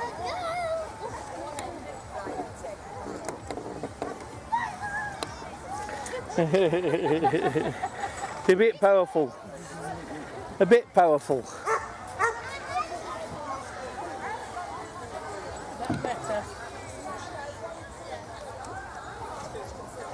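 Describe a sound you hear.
Men, women and children chat and call out in a crowd outdoors.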